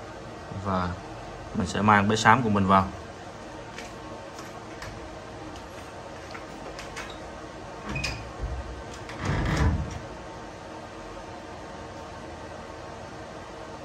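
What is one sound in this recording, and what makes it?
Small fans whir steadily.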